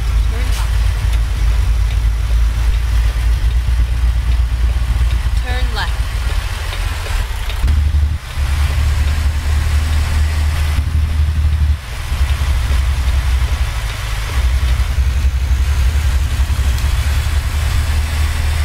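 Tyres hum on a road.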